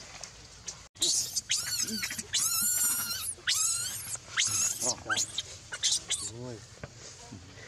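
A baby monkey screams and shrieks loudly.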